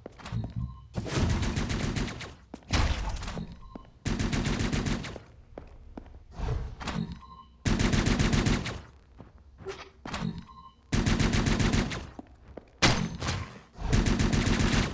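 Automatic gunfire rattles in short, loud bursts.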